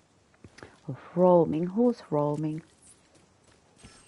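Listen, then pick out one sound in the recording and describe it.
Footsteps crunch softly over dry ground and grass.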